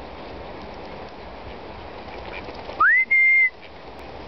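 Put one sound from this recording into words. Ducks call softly nearby outdoors.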